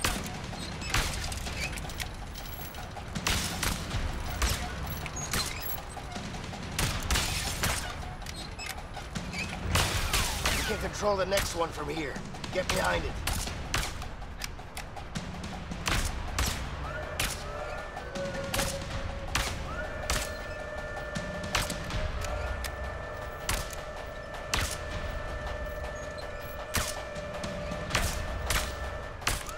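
Sharp gunshots crack repeatedly, echoing through a large hall.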